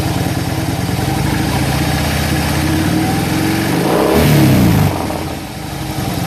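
A motorcycle engine revs up sharply, then drops back.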